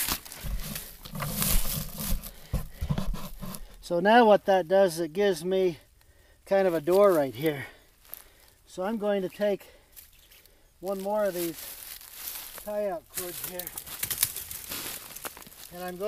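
Dry leaves crunch and rustle underfoot.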